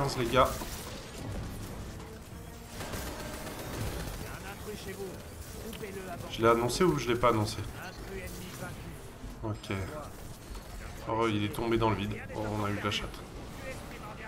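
A young man talks into a microphone with animation, close up.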